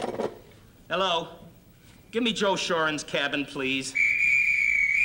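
A middle-aged man talks into a telephone.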